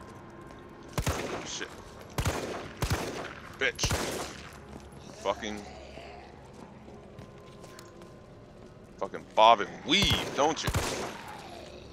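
Pistol shots ring out one after another.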